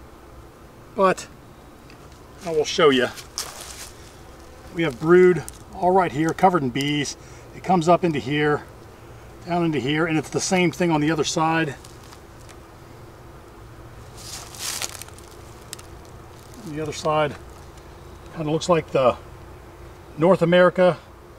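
A man talks calmly close by, in short phrases.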